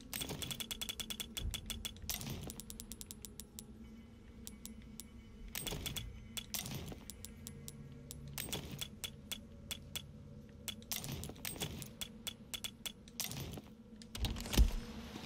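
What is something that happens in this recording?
Short menu clicks and chimes sound in quick bursts.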